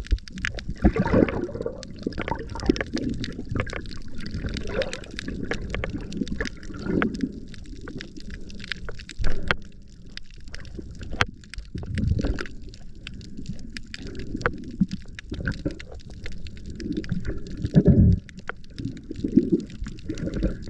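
A diver breathes out through a regulator, sending up bursts of bubbles underwater.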